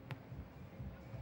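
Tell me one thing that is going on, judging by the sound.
A hand strikes a ball with a sharp slap.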